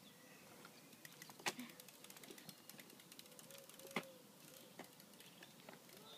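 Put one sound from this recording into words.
A bicycle clicks and knocks close by.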